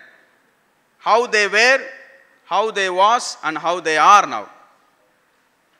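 A man speaks loudly and with animation through a microphone.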